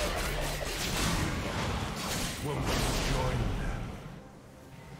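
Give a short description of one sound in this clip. Video game spells whoosh and crackle in a fast fight.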